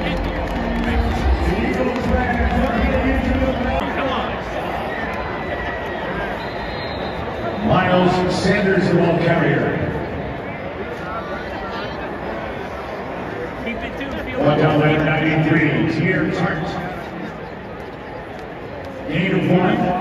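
A huge stadium crowd roars and cheers in a wide open space.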